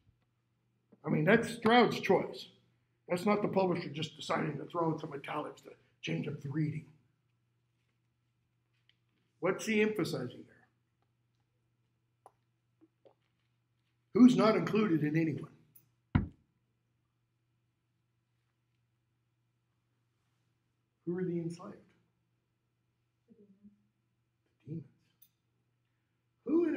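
An older man speaks calmly in bursts with pauses, close by.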